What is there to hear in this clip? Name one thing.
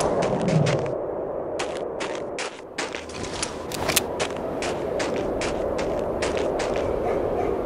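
Boots crunch quickly through snow.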